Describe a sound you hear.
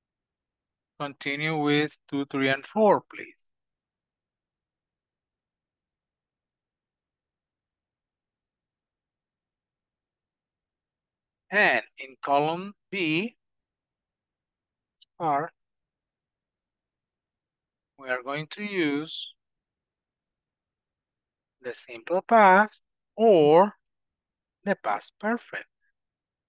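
A man speaks calmly into a microphone over an online call, in short phrases with pauses.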